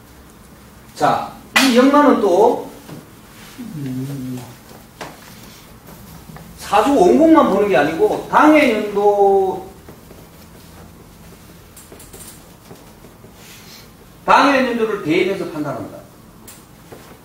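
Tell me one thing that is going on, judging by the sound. A middle-aged man speaks in short bursts, close by, with pauses between.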